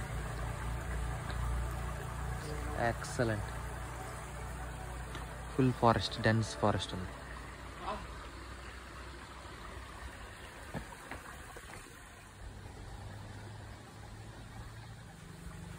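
A shallow stream trickles and gurgles over rocks.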